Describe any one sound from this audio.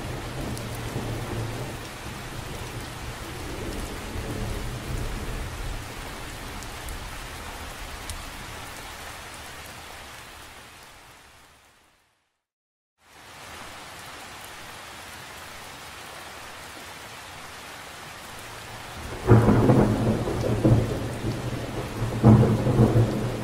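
Rain patters steadily on the surface of a lake.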